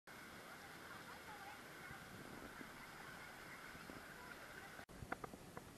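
Gentle waves lap against rocks.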